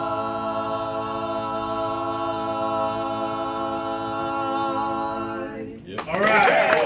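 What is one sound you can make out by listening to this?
A male vocal quartet sings a sustained harmonized chord in a room.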